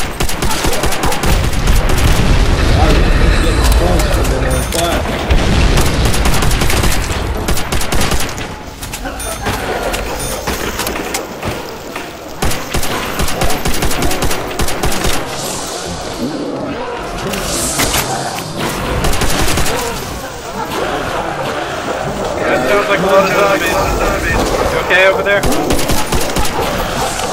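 Zombies growl and snarl close by.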